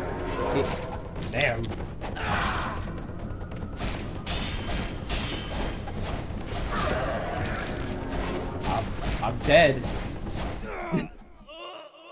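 Swords clash and slash in fast, sharp bursts.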